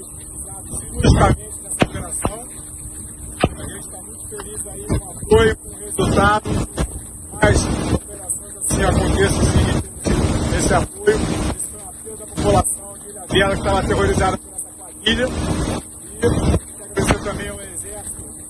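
A man speaks with animation close to a microphone, outdoors in wind.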